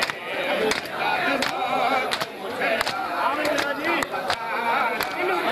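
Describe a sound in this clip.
Men beat their chests in a steady rhythm with sharp slaps.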